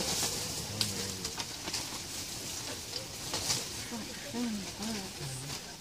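A large bird's wings flap loudly close by.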